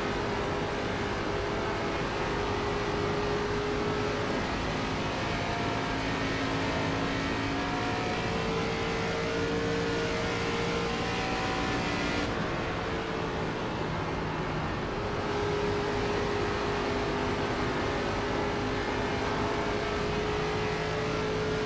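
A race car engine roars steadily at high speed, its pitch rising and falling slightly.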